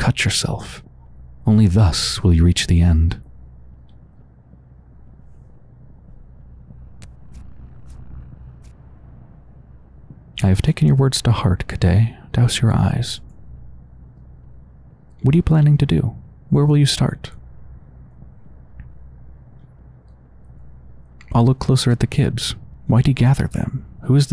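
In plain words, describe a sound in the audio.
A young man speaks slowly and calmly in short phrases, close by.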